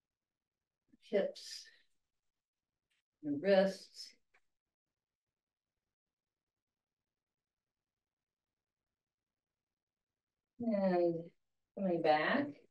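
An elderly woman speaks calmly through a microphone, pausing between phrases.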